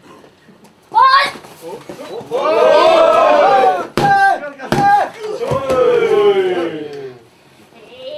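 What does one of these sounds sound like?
A young woman screams and cries out with effort.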